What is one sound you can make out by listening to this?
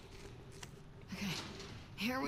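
A young woman says a short word calmly.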